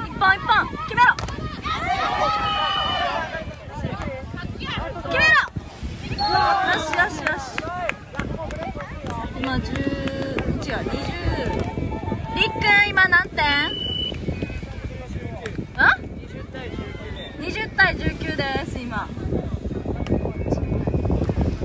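Young people shout and cheer with excitement outdoors.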